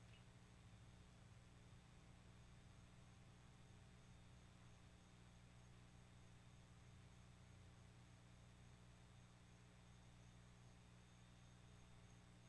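A small flute plays a soft, airy tune close by.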